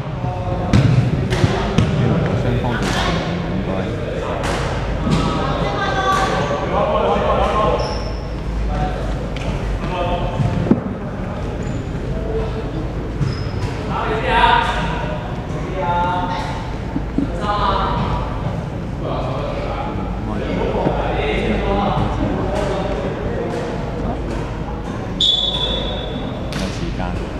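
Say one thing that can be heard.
Sneakers squeak on a wooden floor.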